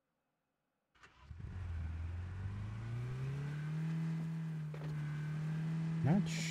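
A car engine starts and revs up, then runs steadily.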